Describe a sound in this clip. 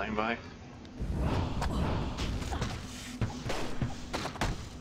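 Fiery spells whoosh and burst in a game battle.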